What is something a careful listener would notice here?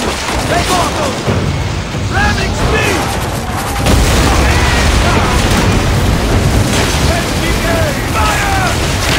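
A crowd of men shouts and cheers in battle.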